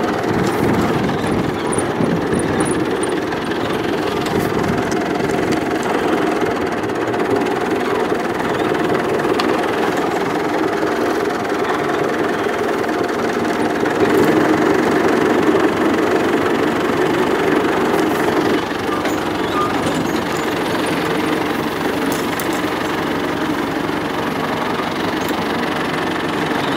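Tractor wheels rumble over rough grass.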